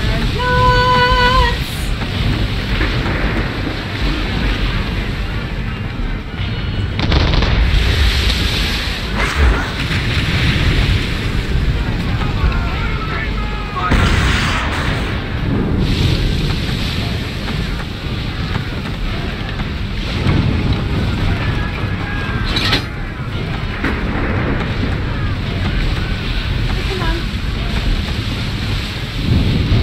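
Stormy waves crash and roar around a ship.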